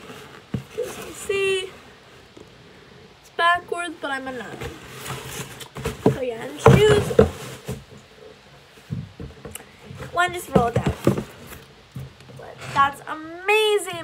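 A cardboard box rustles and thumps as it is handled.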